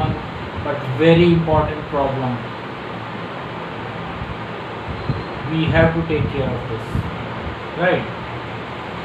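A man speaks calmly and close to a clip-on microphone.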